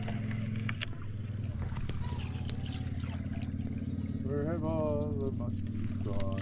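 A fishing reel clicks and whirs as line is wound in.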